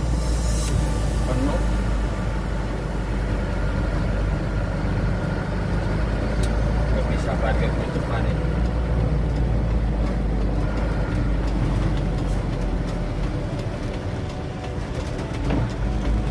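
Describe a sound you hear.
A truck's diesel engine rumbles steadily from inside the cab.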